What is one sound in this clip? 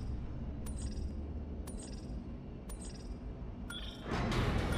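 A countdown beeps once a second.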